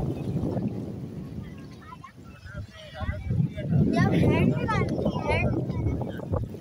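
Small waves lap at the shore.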